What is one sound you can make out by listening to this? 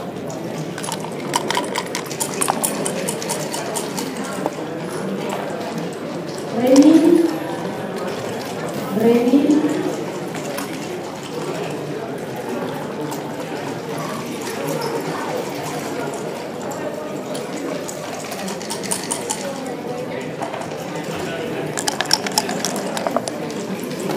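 Dice rattle and tumble across a board.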